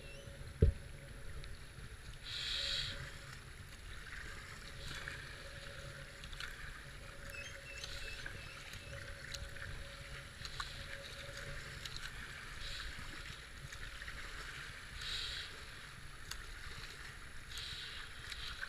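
Fast river water rushes and gurgles steadily.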